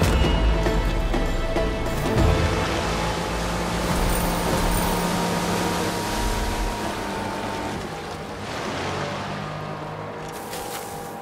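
A boat motor hums steadily over water.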